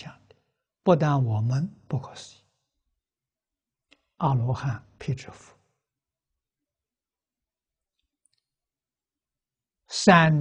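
An elderly man speaks calmly and close to a microphone, in short phrases with long pauses.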